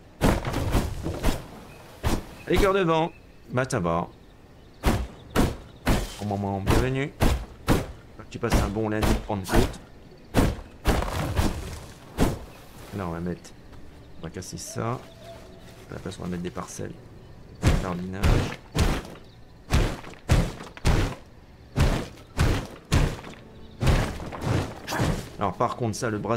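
An axe chops wood with sharp, repeated knocks.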